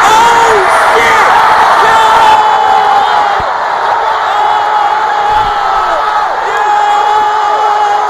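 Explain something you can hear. A large crowd cheers and roars loudly in a big echoing hall.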